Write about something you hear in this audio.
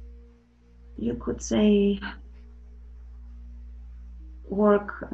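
A young woman speaks softly over an online call.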